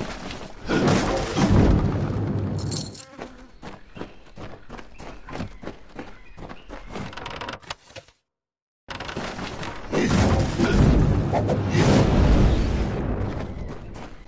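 Loud magic blasts and explosions roar in a game battle.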